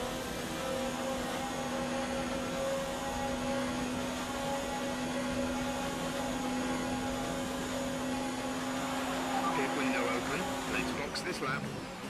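A racing car engine screams steadily at high revs.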